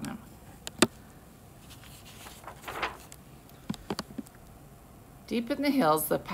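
Paper book pages turn with a soft rustle.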